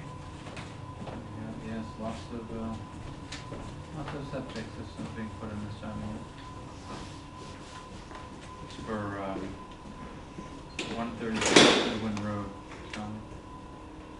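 An adult speaks calmly at a distance in a room.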